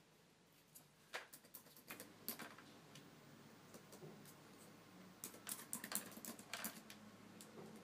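Fingers tap on a laptop keyboard.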